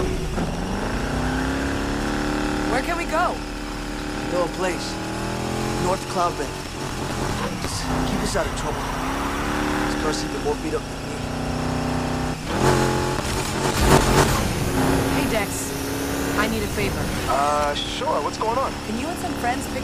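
A car engine roars and revs up and down.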